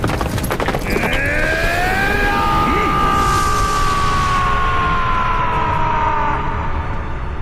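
A man lets out a long, loud battle cry.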